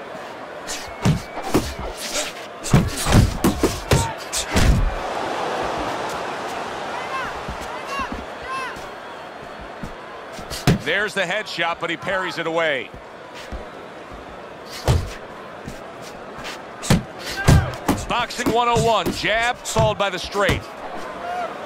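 Gloves land punches with heavy thuds.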